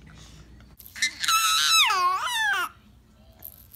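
A baby squeals loudly close by.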